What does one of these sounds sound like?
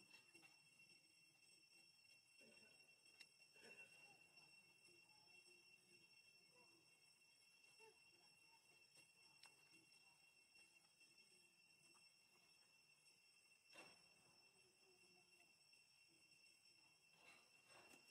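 A baby monkey squeaks and whimpers softly.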